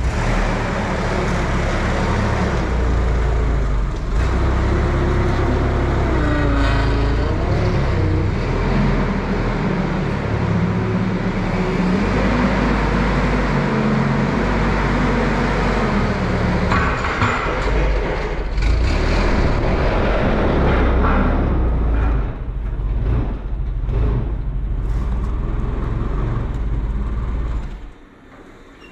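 A forklift engine rumbles steadily close by.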